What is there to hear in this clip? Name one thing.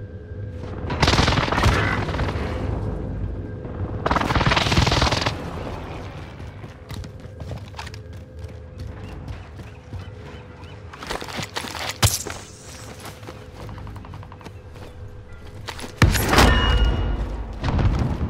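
Gunfire cracks in loud, rapid bursts.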